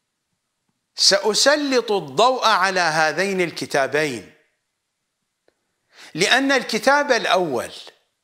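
A middle-aged man speaks with emphasis into a close microphone.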